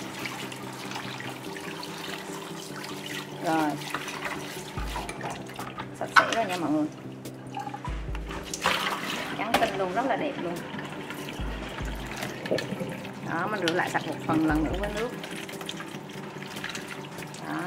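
Water runs from a tap and splashes into a bowl.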